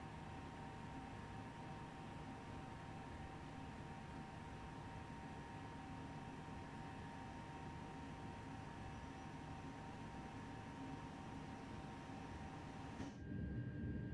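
An electric train hums steadily.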